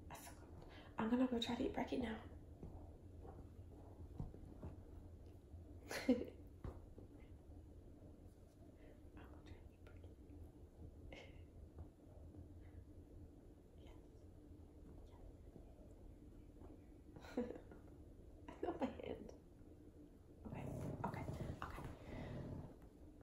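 A young woman talks softly and playfully close by.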